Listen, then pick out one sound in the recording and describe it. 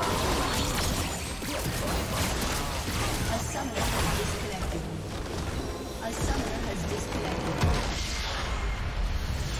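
Game spell effects crash and whoosh in a fast battle.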